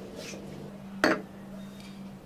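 A glass knocks onto a hard counter.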